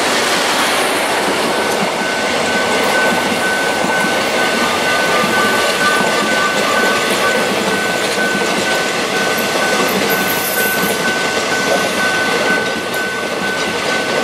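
A passenger train rushes past close by with a loud rattling roar.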